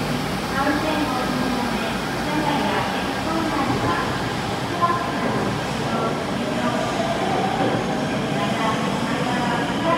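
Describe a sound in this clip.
A train pulls out of the station and rolls away, its rumble fading.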